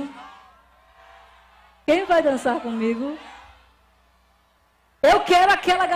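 A young woman sings loudly through a microphone over a loudspeaker system, with echo trailing off between phrases.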